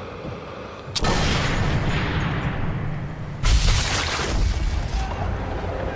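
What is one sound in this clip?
A rifle fires a loud, booming shot that echoes.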